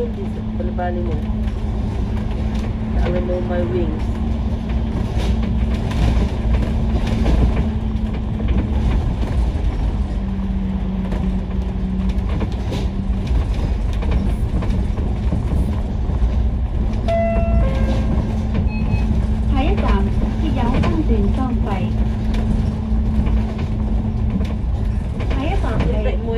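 A bus engine hums and rumbles steadily from inside while driving.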